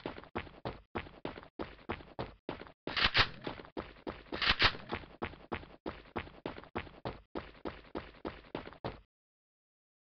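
Footsteps run quickly across the ground.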